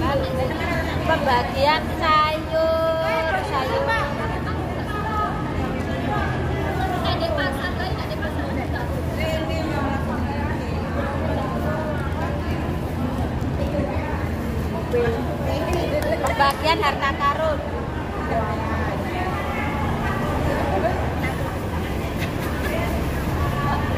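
Several young women chat nearby.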